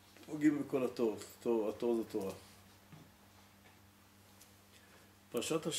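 An elderly man speaks calmly and reads out, close to a microphone.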